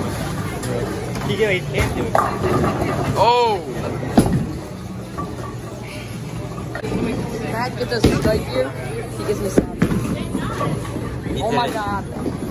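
Bowling balls roll and crash into pins in a large echoing hall.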